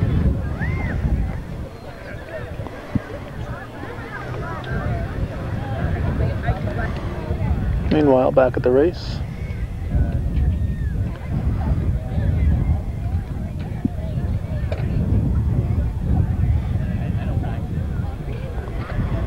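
Wind rumbles across an open field outdoors.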